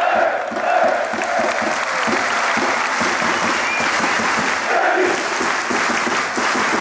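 Players clap their hands in a steady rhythm.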